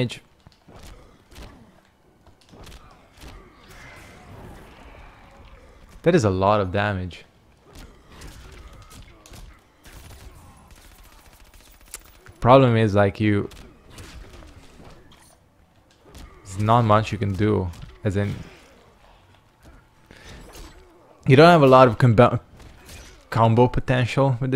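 Heavy punches and blows thud and crack in quick bursts.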